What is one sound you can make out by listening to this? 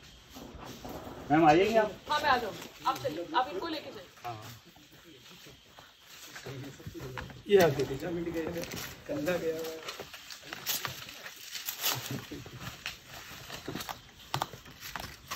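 Footsteps scrape and crunch on rocky ground.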